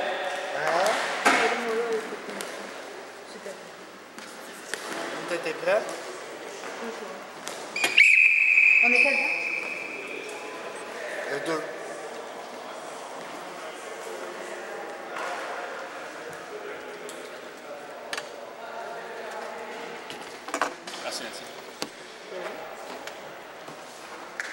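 Hockey sticks clack and tap on a hard floor.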